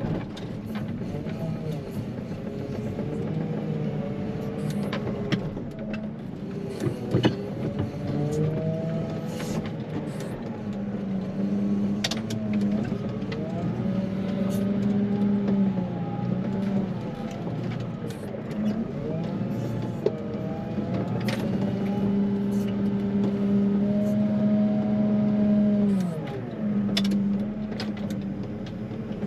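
A plough blade scrapes across a snowy road.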